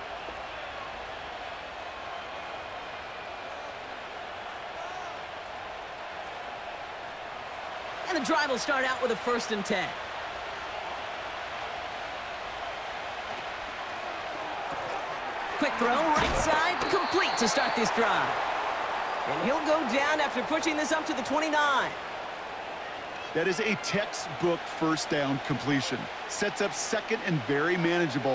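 A stadium crowd murmurs steadily in the background.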